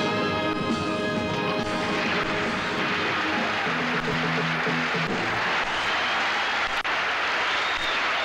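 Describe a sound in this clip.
A woman sings loudly.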